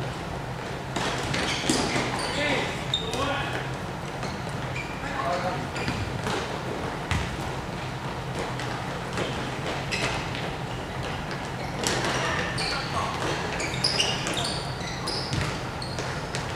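Young players shout and call out to each other across an echoing hall.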